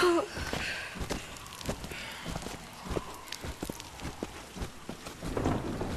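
Footsteps thud on hard ground.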